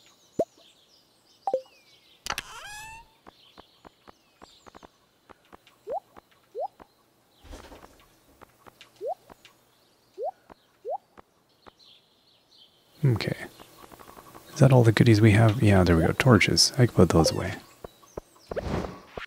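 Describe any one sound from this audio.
Soft game menu clicks and blips sound as items are selected.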